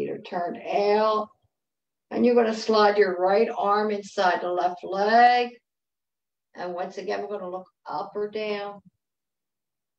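An elderly woman speaks calmly through an online call.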